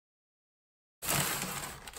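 Tape tears off a cardboard box.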